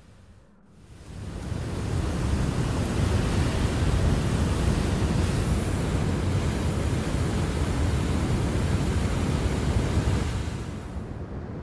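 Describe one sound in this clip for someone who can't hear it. Wind rushes loudly and steadily over open ground.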